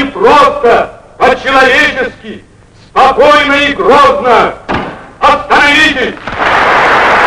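A man speaks forcefully to a large audience in an echoing hall.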